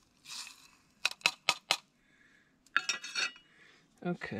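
Metal utensils clink against a pan.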